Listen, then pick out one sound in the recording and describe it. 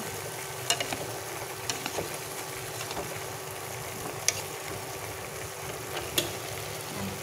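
A metal utensil clinks against a pot.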